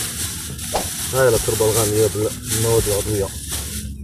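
A small trowel scrapes into dry soil.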